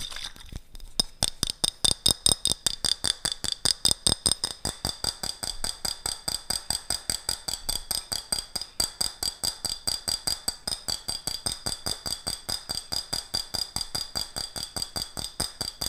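Fingertips tap rapidly and steadily on a glass jar close to a microphone.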